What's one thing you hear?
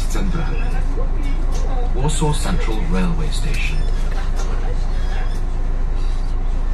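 A bus engine hums steadily at idle.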